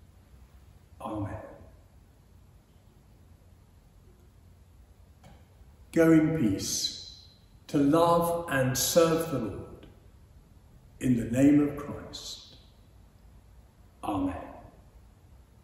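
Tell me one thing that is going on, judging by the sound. An elderly man speaks slowly and solemnly in a large echoing room.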